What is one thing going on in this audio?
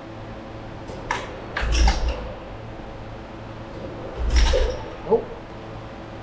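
Metal parts clank against an engine block.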